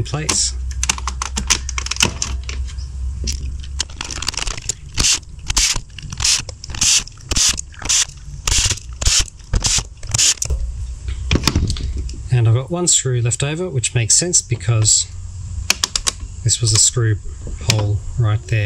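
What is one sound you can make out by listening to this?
Plastic parts click and clatter as they are handled.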